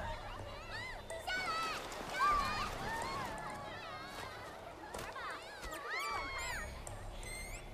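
Young women laugh and call out playfully.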